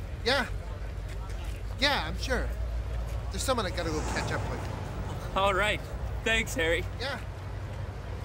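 A young man speaks up close in short bursts.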